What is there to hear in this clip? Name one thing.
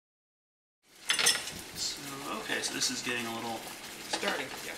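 A whisk clinks and scrapes in a metal pan.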